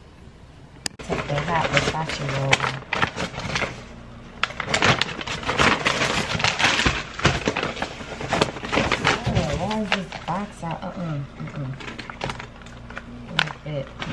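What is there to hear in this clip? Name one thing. A paper bag rustles and crinkles as it is handled.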